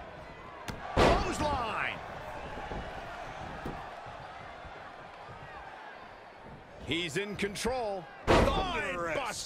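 Heavy thuds of bodies hitting a wrestling mat.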